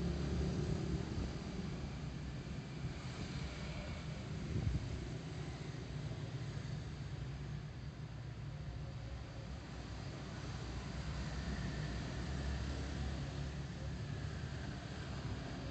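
A motorbike engine hums steadily up close while riding.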